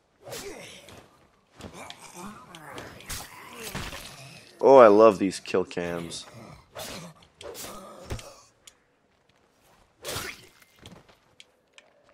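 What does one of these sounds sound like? Heavy blows thud in a scuffle.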